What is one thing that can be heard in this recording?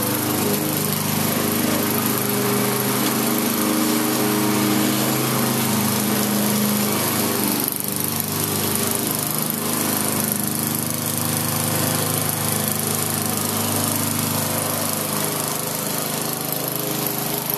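A lawn mower engine runs steadily nearby, rising and falling as it cuts grass.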